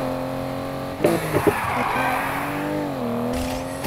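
Tyres screech as a car drifts around a bend.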